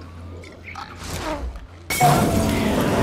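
A bottle smashes.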